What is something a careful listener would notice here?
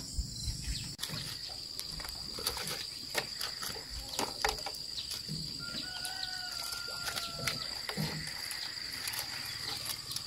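Dry, brittle pieces rustle and crackle under hands.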